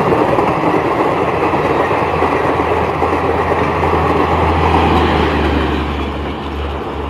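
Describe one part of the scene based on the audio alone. A passenger train rumbles past on the tracks.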